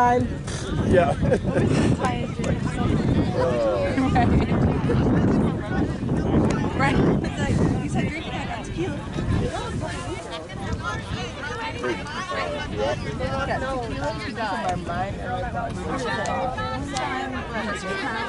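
Young women chat and call out to each other outdoors.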